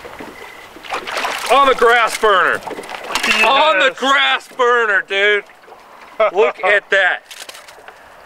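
A man talks excitedly up close.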